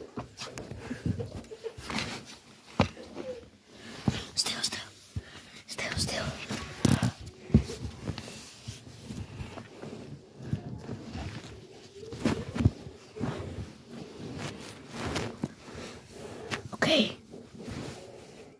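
Fabric rustles and bumps close by.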